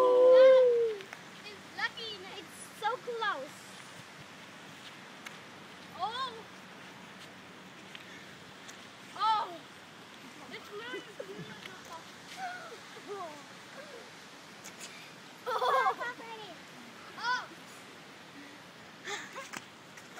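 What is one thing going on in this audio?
Young children talk and shout excitedly nearby outdoors.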